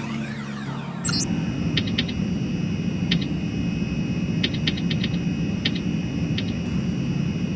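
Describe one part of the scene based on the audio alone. Electronic beeps and chirps sound from a terminal.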